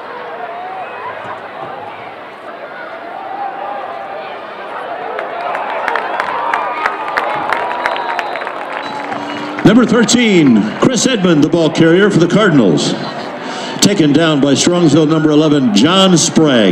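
A crowd cheers and shouts in an outdoor stadium.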